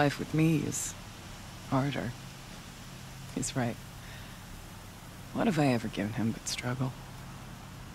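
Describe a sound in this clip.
An older woman speaks calmly and gravely.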